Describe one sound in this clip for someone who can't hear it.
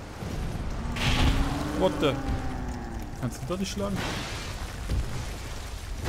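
Heavy blows thud and crash on stone.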